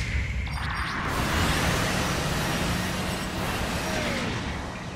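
A jet thruster roars steadily.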